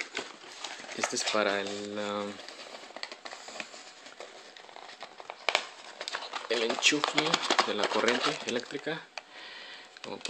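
A paper card rustles as hands handle it.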